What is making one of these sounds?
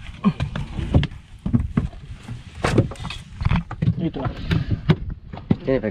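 Footsteps thump and knock on a wooden boat's deck.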